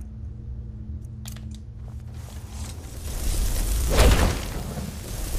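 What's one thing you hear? Magic flames hiss and crackle in both hands.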